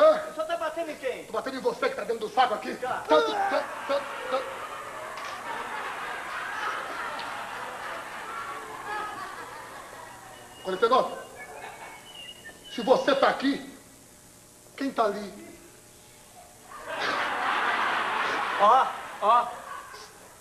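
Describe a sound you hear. A middle-aged man speaks loudly and with animation.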